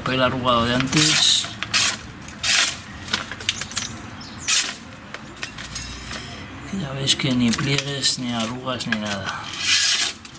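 A sharp knife slices through sheets of paper with quick swishing cuts.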